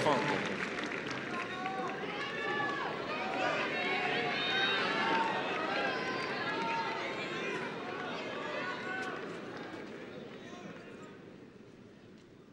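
A large crowd applauds and cheers, then dies down.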